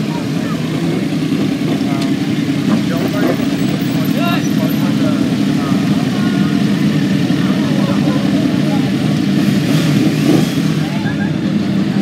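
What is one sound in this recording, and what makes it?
Several motorcycle engines idle and rumble close by.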